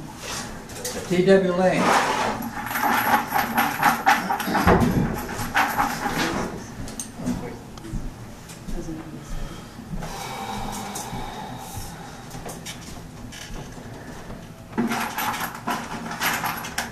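Several middle-aged men talk close by in a room.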